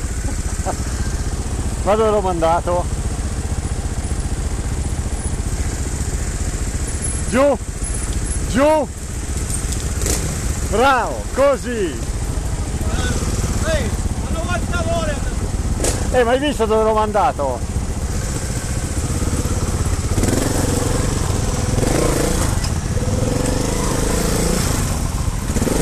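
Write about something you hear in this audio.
A motorbike engine rumbles close by throughout.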